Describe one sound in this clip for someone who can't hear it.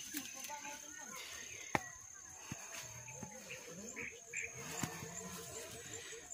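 Footsteps tread through grass on a dirt path.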